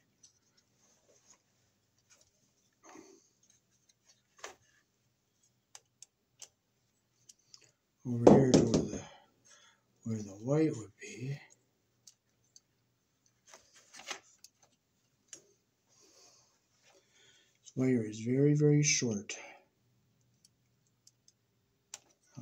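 Small plastic parts click and tap as a wall plate is handled.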